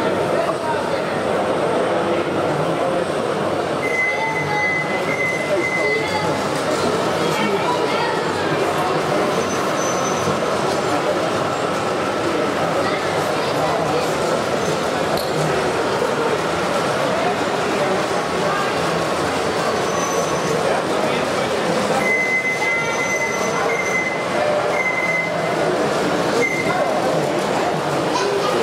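A small model train hums and clatters along its track.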